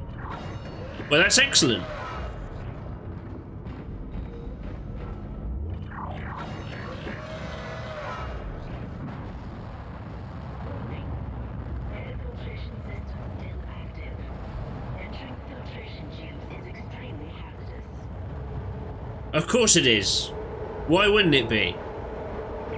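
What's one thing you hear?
A man shouts excitedly into a close microphone.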